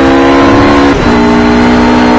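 A GT3 race car engine drops in pitch as the car shifts up a gear.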